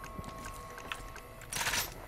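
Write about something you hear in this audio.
A rifle is reloaded with sharp metallic clicks.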